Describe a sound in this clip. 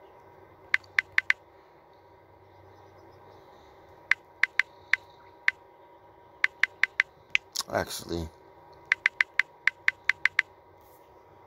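Keyboard clicks tick rapidly as a phone keyboard is tapped.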